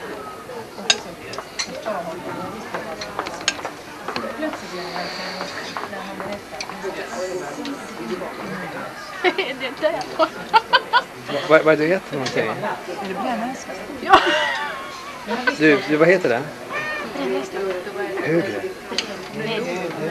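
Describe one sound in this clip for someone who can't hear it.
Several adult men and women chatter together nearby.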